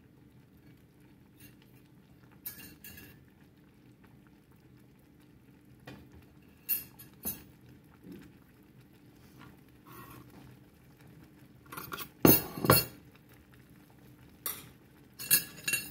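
Tortilla chips simmer in a pan of green sauce.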